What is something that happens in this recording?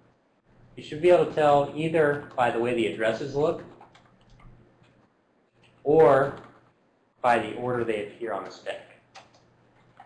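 A man lectures through a microphone, speaking calmly with pauses.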